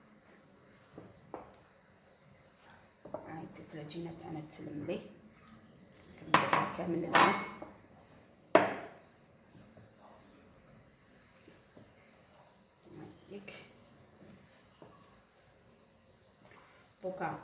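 Hands knead soft dough in a bowl, with quiet squishing and patting.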